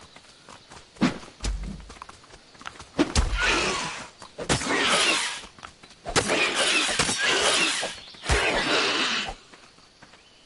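A spear thrusts and strikes a creature with heavy thuds.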